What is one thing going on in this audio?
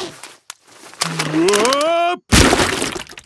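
A man cries out in a rising yell.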